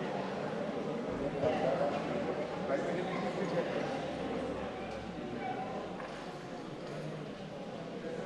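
Adult men and women murmur quietly together in a reverberant hall.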